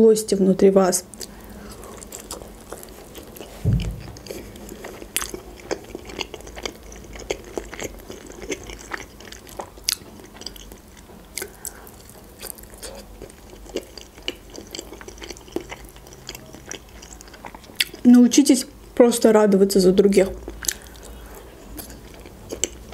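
A young woman chews and crunches food with wet mouth sounds close to a microphone.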